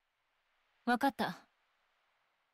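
A young woman speaks briefly and quietly.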